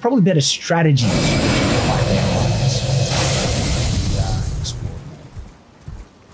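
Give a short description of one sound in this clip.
A magic spell whooshes loudly in a game.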